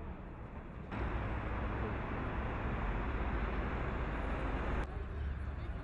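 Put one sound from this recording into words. Heavy traffic roars steadily along a road.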